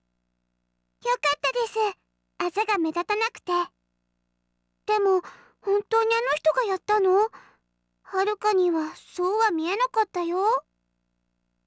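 A young girl speaks in a bright, lively voice close to a microphone.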